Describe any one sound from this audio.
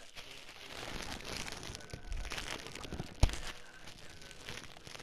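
Fire crackles.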